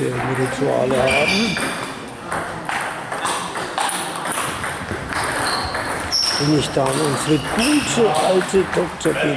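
A table tennis ball clicks back and forth on paddles and a table in an echoing hall.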